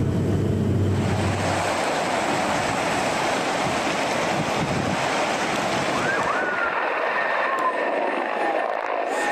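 A forest fire roars and crackles through trees.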